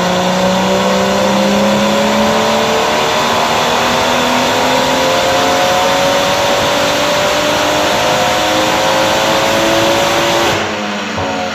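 A car engine roars loudly at high revs, its pitch climbing slowly.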